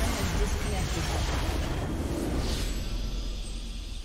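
A triumphant game fanfare rings out.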